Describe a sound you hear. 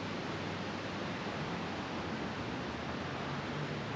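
A river rushes steadily over rocks.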